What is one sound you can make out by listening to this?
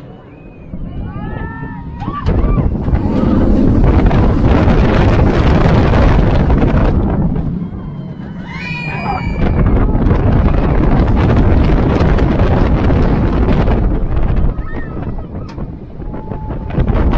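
Wind roars past a microphone on a speeding roller coaster.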